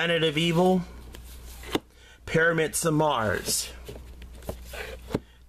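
Plastic cases click and rattle as they are pulled from a shelf.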